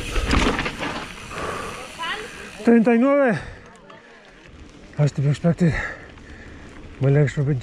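Bicycle tyres roll and crunch over a gravel track.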